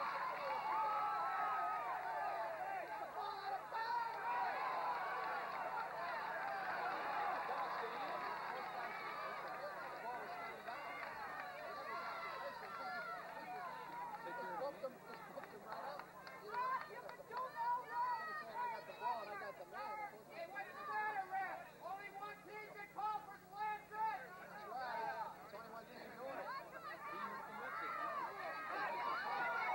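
A crowd of spectators cheers and chatters outdoors.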